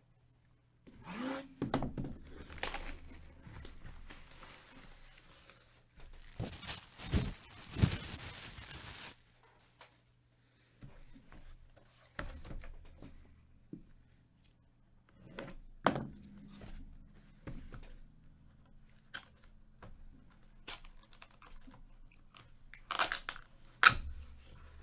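Hands shift a cardboard box, with soft scrapes and taps.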